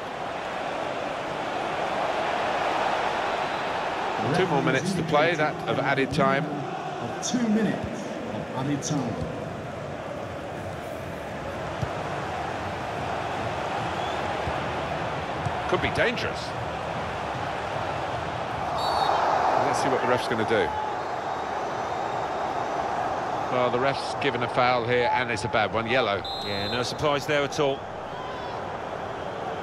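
A large stadium crowd roars and murmurs steadily throughout.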